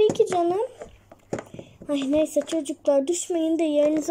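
A small plastic toy taps on a table.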